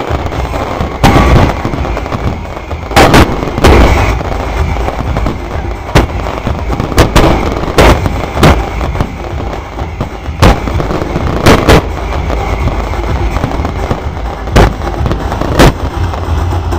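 Fireworks burst with loud booms and bangs, one after another.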